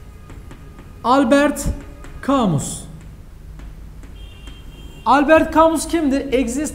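A young man speaks with animation nearby.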